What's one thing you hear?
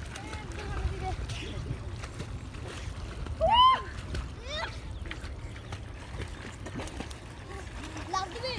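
Water splashes softly as swimmers paddle.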